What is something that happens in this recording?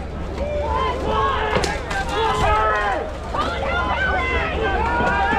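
A crowd of men shouts and cheers outdoors.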